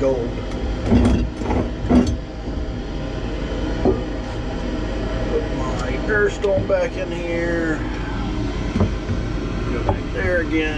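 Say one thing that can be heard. A hand knocks against a glass jar with a dull clink.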